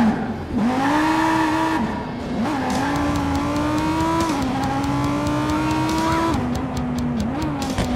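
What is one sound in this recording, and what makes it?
A sports car engine revs and roars, shifting through gears as it speeds along.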